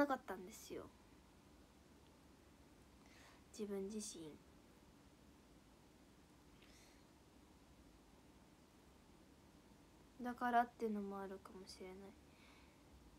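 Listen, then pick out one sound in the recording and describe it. A young woman speaks softly and briefly, close to a microphone, with pauses between phrases.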